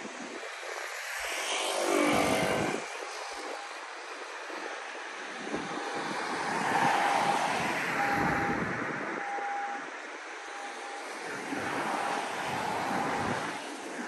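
Cars drive past close by, their tyres hissing on the road.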